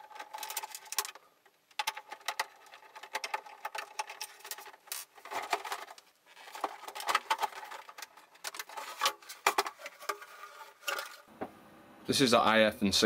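Plastic parts click, knock and rattle as a hard casing is handled and pulled apart.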